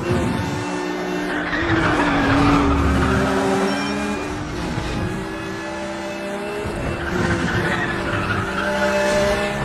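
Tyres hiss on asphalt at speed.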